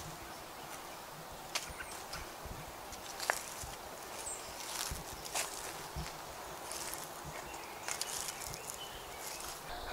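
Footsteps crunch softly on dry leaves.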